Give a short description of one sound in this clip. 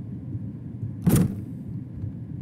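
A door unlocks and swings open.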